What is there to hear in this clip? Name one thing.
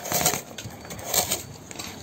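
A carrot scrapes against a metal grater.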